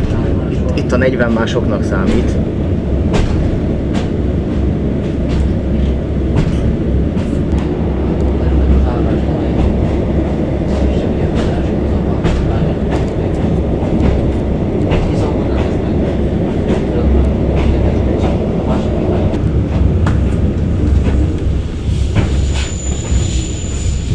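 A train rumbles along steadily at speed.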